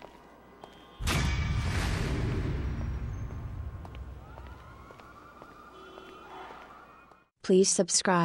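A bright musical fanfare bursts in and slowly fades.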